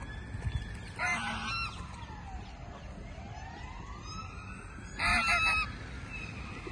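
Geese honk loudly nearby.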